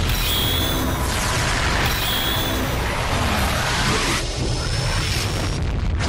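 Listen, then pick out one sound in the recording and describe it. A magic energy blast roars and hums loudly.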